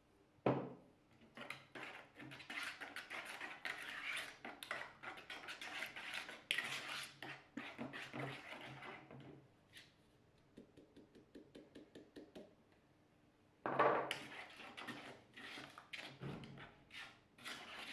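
A spatula whisks and scrapes quickly against a plastic bowl.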